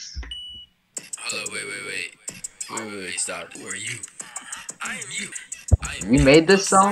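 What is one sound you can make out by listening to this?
A second young man speaks with animation over an online call.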